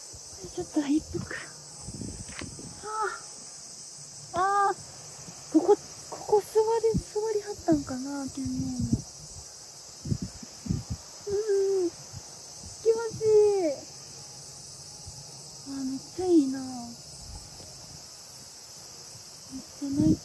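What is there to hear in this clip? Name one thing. A young woman speaks softly and cheerfully, close by, outdoors.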